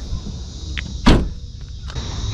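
A car tailgate slams shut with a thud.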